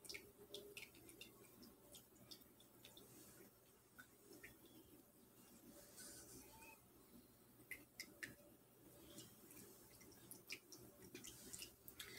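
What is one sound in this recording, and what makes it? Playing cards rustle and tap softly as a hand handles them.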